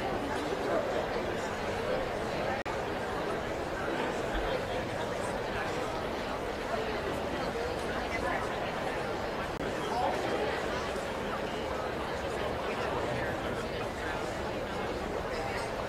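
A crowd murmurs steadily in a large, echoing hall.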